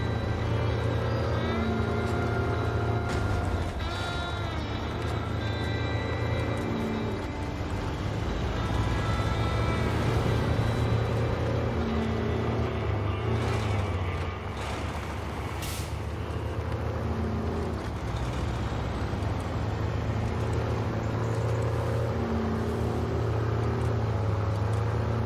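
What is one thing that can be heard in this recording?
A heavy truck engine rumbles steadily and strains as the truck drives along a gravel road.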